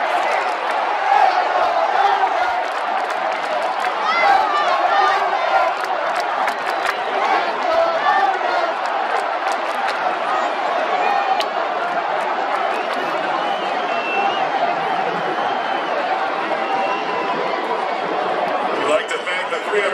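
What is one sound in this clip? A large crowd sings together in an open stadium.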